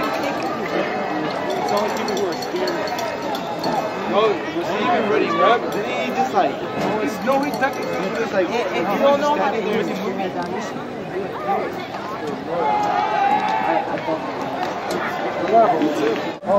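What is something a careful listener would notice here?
Many men and boys nearby chatter and call out.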